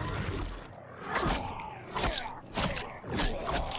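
Sharp blades stab into flesh with wet, squelching thuds, again and again.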